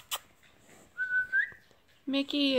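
A puppy whimpers with a high, thin squeak.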